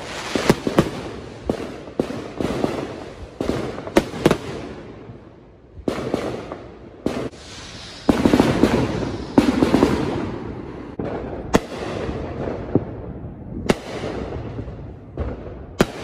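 Fireworks bang and crackle nearby, with rumbling booms echoing around.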